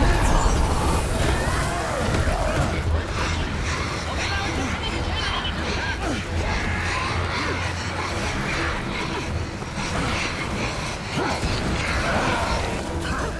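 Magical spell effects crackle and whoosh in a dense, continuous barrage.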